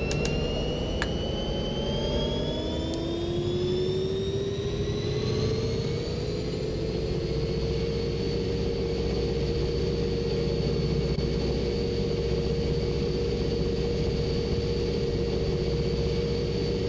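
A diesel locomotive engine hums and rises steadily in pitch as the train gathers speed.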